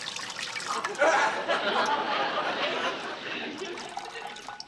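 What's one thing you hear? Water runs from a tap and splashes.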